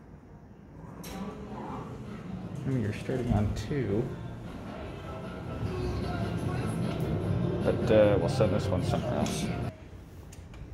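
Elevator doors slide open and shut.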